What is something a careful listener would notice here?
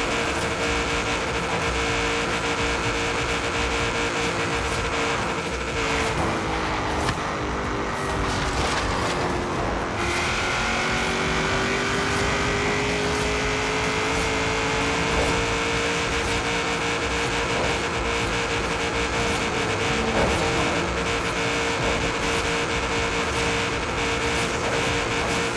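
Tyres hiss steadily on the road.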